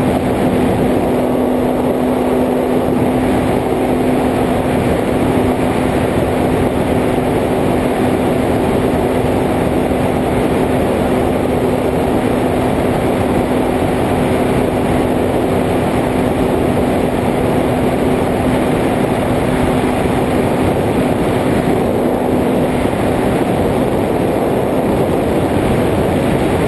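A drone's propellers whir and buzz loudly and steadily.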